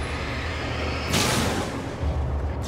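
A flare bursts with a loud hissing whoosh.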